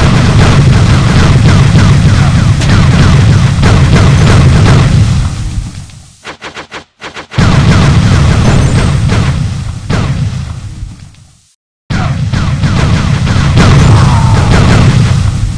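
Explosions boom in a video game.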